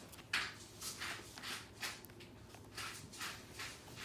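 A puppy growls playfully while tugging on a chew.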